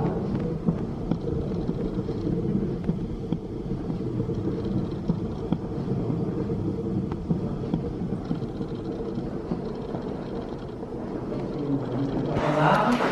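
A fan blows air with a steady low roar.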